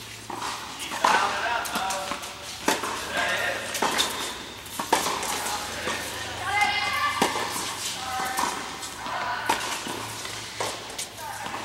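Tennis rackets hit a ball back and forth, with the strikes echoing in a large indoor hall.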